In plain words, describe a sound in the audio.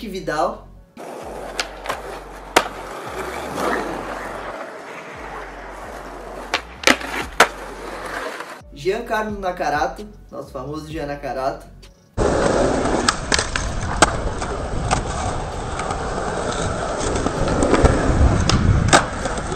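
Skateboard wheels roll and clack on concrete.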